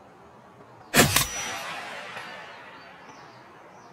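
A single loud rifle shot rings out and echoes away.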